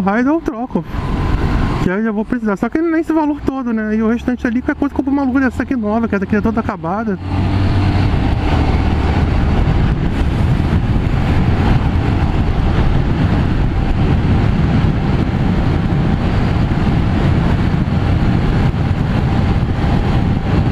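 A motorcycle engine hums and revs up and down while riding.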